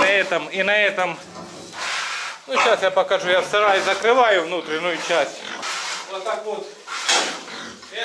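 Pigs squeal loudly and shrilly.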